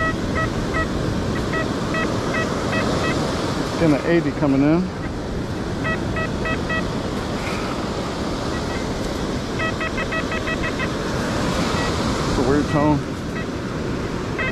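A metal detector beeps in short, quick electronic bursts.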